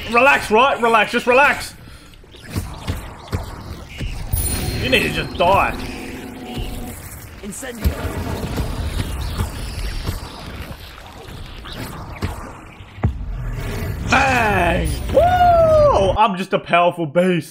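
Spells crackle and blast.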